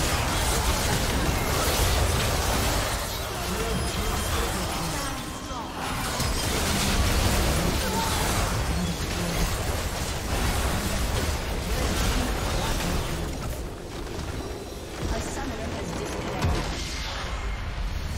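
Game spells crackle and burst in a busy battle.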